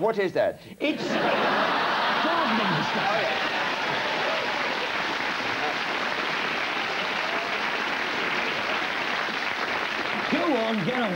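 A studio audience laughs and applauds loudly.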